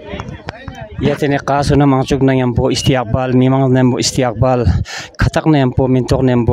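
A crowd of men and women chants loudly together.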